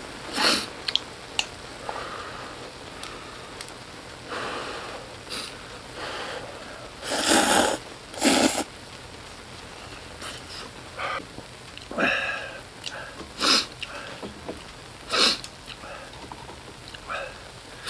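Chopsticks clink against a metal pot.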